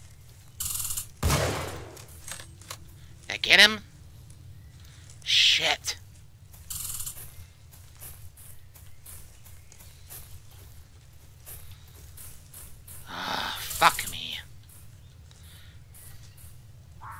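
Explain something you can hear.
Footsteps swish through grass at a steady walk.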